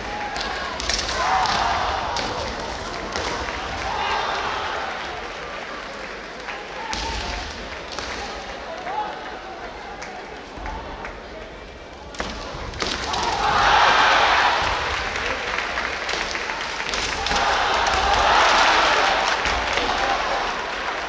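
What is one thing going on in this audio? Fencers shout loudly in a large echoing hall.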